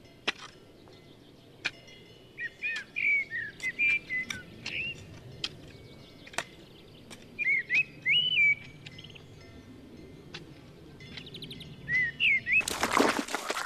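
A hoe scrapes and chops into soil.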